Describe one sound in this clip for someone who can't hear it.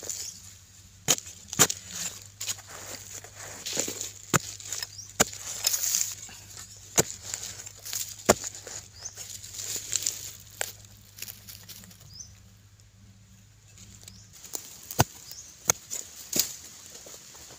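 A metal tool digs and scrapes into dry soil.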